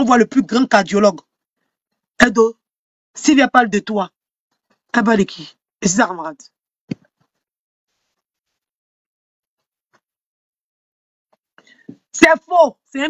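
A young woman talks with animation close to a microphone, in short bursts with pauses.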